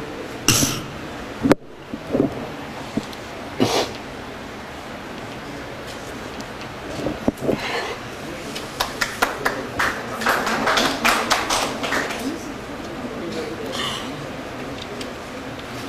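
A young woman weeps quietly.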